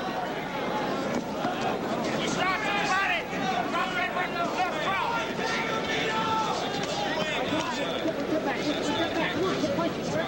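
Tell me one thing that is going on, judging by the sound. A large crowd cheers and shouts loudly in an echoing arena.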